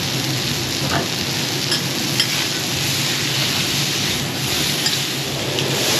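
A metal spatula clinks and scrapes against the griddle.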